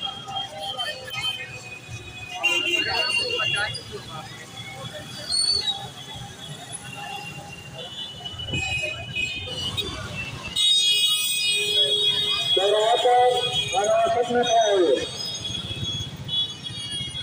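Traffic rumbles steadily on a crowded street.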